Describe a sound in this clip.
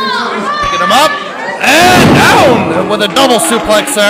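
A wrestler is slammed onto a wrestling ring mat with a heavy thud.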